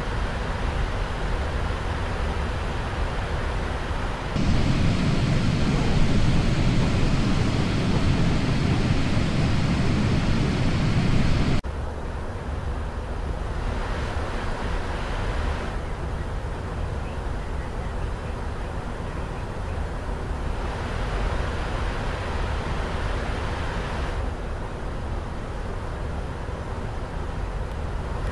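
A steady jet engine roar fills a cockpit.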